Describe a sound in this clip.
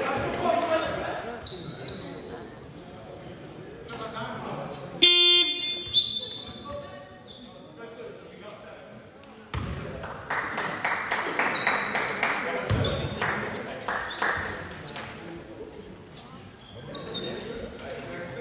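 Men call out to each other across an echoing hall.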